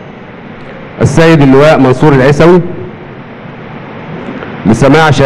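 A middle-aged man speaks slowly and deliberately into a microphone, in bursts with pauses.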